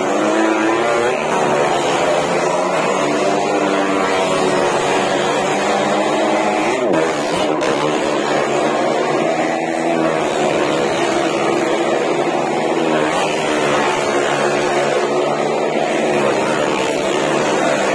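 Car engines roar steadily, echoing loudly.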